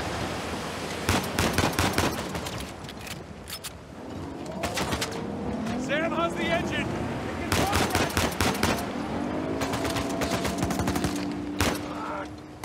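Pistol shots crack in rapid bursts.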